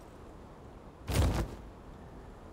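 A menu opens with a soft whoosh.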